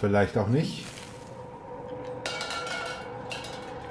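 A metal can clanks against glass.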